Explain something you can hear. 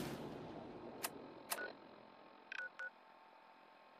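Electronic menu clicks and short beeps sound from a handheld device.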